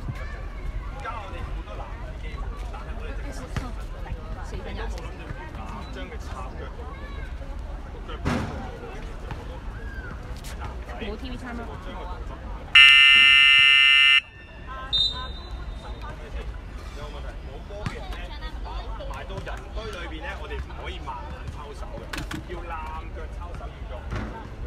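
Young girls chatter and call out nearby outdoors.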